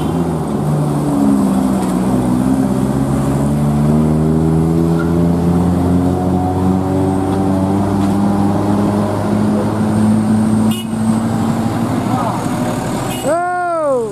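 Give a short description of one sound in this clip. A truck engine roars and climbs in pitch as it labours uphill.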